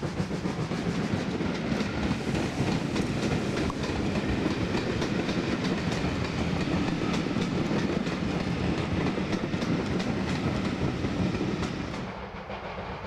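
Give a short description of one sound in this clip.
Railway carriages rumble and rattle past close by.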